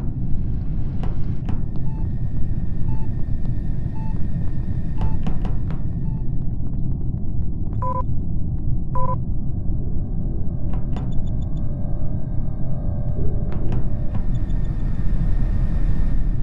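Quick soft footsteps patter along a hard floor.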